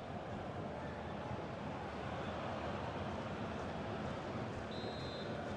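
A large stadium crowd roars steadily in the distance.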